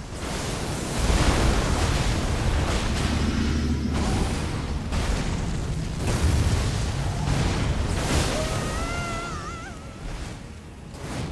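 Magic explosions rumble deeply.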